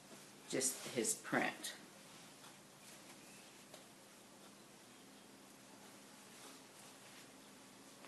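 Cloth rustles as a woman shakes out a large fabric.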